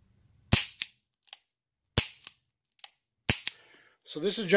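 A revolver's hammer snaps with sharp metallic clicks.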